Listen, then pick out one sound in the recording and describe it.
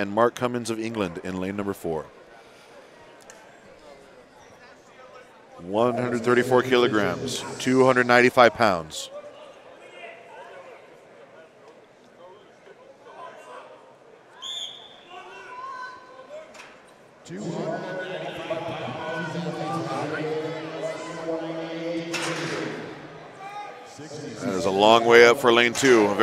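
A man announces loudly through a loudspeaker.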